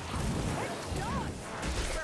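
Blades hack and clash in a fight.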